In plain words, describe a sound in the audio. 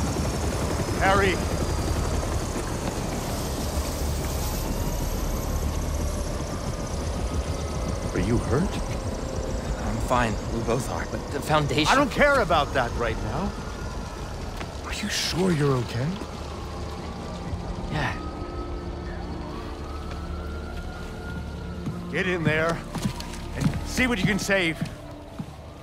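A middle-aged man speaks with worry, close by.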